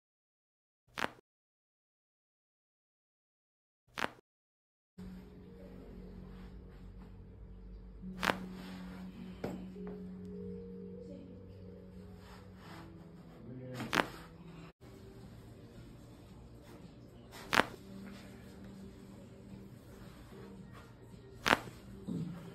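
Neck joints crack with short, sharp pops.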